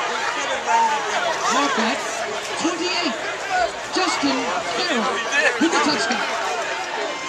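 Men shout to each other nearby.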